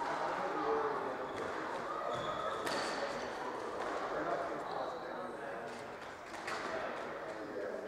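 A squash ball smacks sharply off the walls, echoing around the court.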